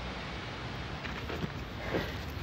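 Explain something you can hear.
A bag rustles as someone reaches into it.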